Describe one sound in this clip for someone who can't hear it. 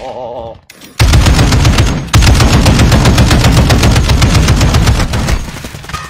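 Rapid heavy gunfire bursts loudly.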